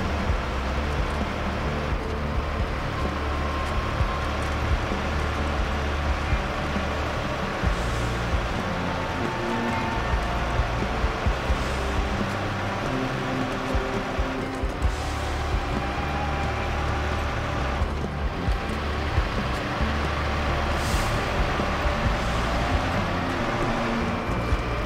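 Truck tyres crunch over a dirt track.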